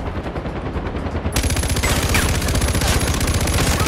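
A helicopter's rotor thuds loudly nearby.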